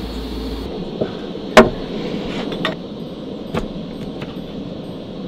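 A knife cuts through a lemon.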